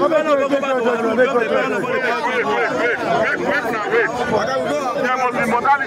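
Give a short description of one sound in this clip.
A middle-aged man shouts angrily up close.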